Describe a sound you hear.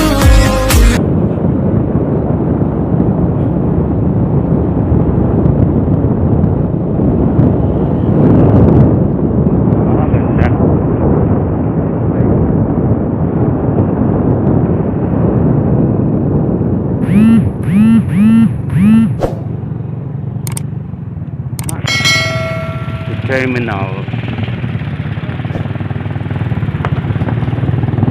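Wind rushes past a moving motorbike.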